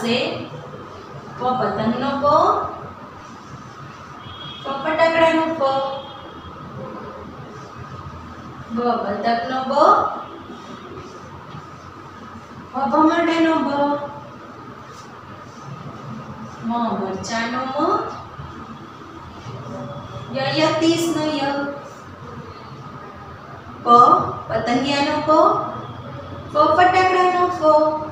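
A woman speaks slowly and clearly nearby, in short phrases with pauses.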